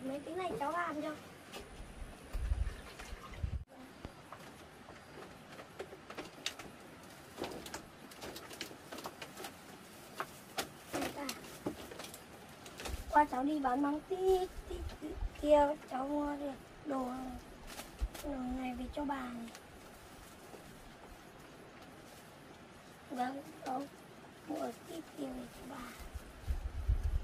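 An elderly woman talks calmly close by.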